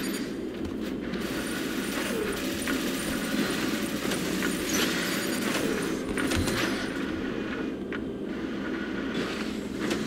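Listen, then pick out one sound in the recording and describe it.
Jet thrusters roar in bursts.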